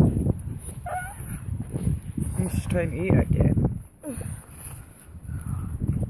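A dog paws and scrapes at snow.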